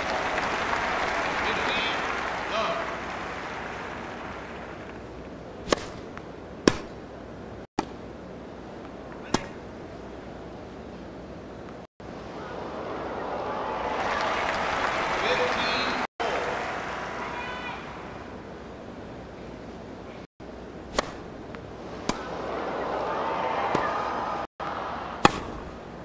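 A large crowd cheers and applauds in swells.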